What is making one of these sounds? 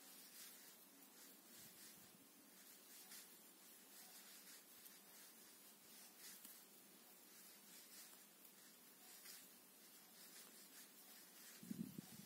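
Yarn rustles softly as a crochet hook pulls loops through it.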